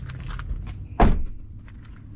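A car door shuts with a heavy thud.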